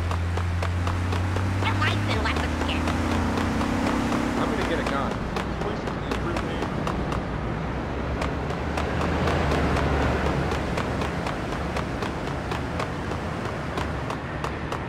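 Footsteps run quickly over crunching snow.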